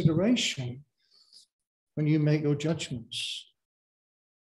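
A man speaks with animation into a microphone, with short pauses.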